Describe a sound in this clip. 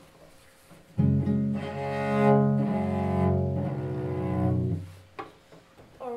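A cello plays a short phrase with a bow.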